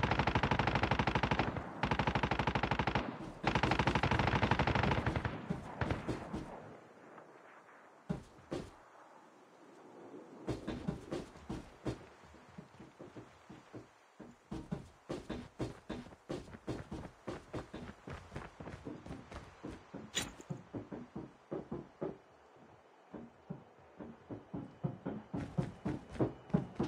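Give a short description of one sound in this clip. Footsteps thud quickly on hard ground and wooden floors.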